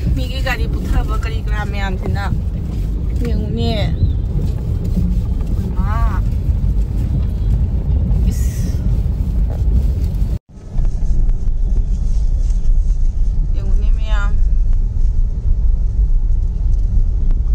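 A car engine rumbles low and steady while driving through water.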